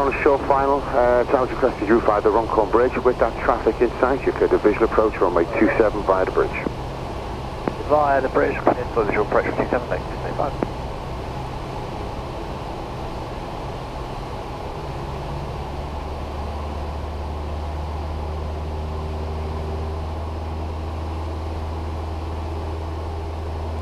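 A light aircraft engine drones steadily throughout.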